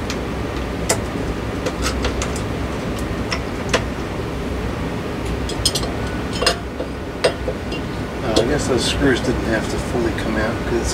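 Small plastic parts click and knock as a light fixture is handled up close.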